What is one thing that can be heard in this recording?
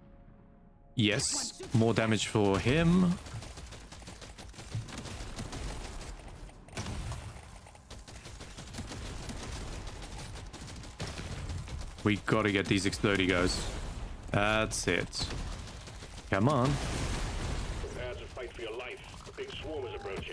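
Rapid gunfire crackles with bursts of energy blasts.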